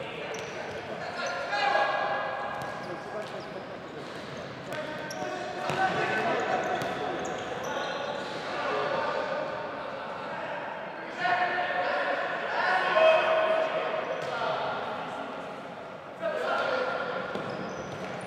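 A ball thuds as it is kicked.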